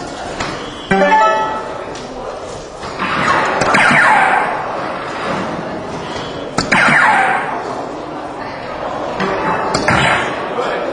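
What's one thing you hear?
Darts thud into an electronic dartboard.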